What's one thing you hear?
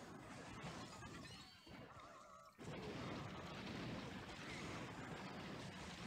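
Game sound effects chime and clash.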